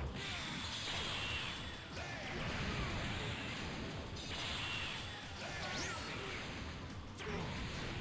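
Energy blasts roar and explode.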